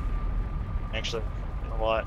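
A fiery blast roars.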